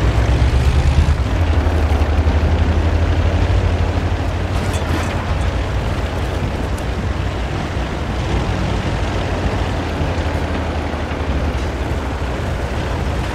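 A tank engine rumbles steadily as the tank drives along.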